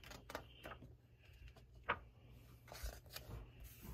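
A paper page turns over with a rustle.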